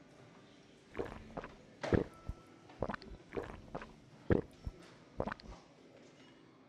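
A woman gulps a drink noisily.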